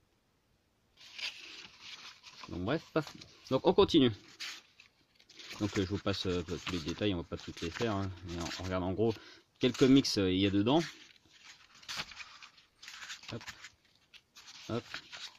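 Pages of a book rustle as they are turned by hand.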